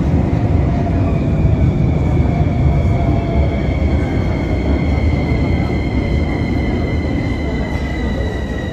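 Train brakes whine with a falling tone as the train slows.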